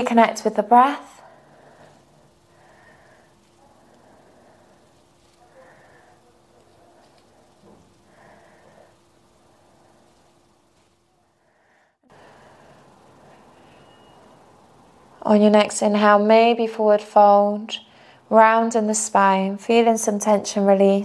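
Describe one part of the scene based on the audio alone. A young woman speaks calmly and clearly into a close microphone.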